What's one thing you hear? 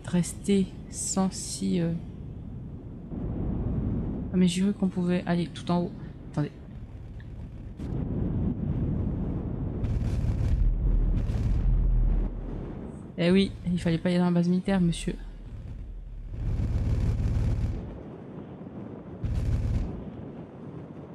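Wind rushes steadily past a gliding parachute.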